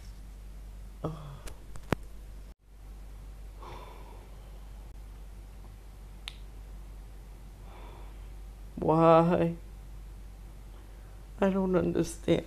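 A young man groans and whimpers loudly, close by.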